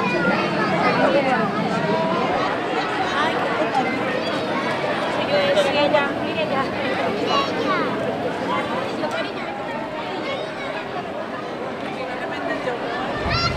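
A crowd of adults and children chatters all around outdoors.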